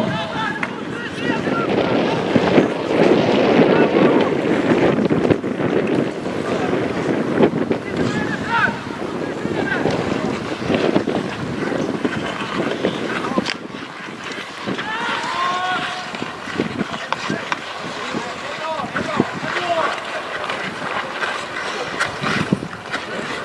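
Sticks knock a ball across the ice with sharp clacks.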